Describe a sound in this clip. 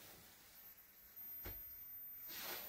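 A wooden tray knocks softly against a mat.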